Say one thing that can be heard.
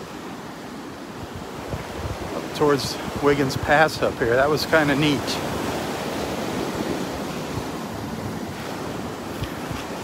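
Waves wash and break steadily onto the shore.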